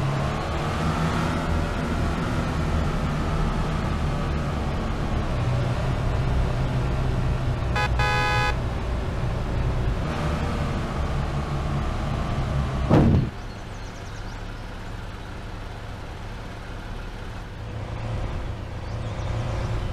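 A truck engine rumbles steadily, then drops to a quieter idle.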